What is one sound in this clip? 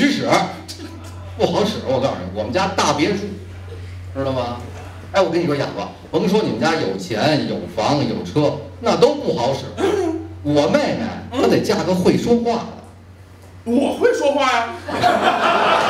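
A second middle-aged man answers through a microphone with animation.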